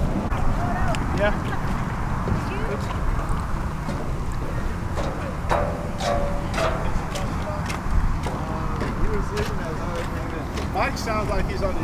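Footsteps thud on a wooden walkway.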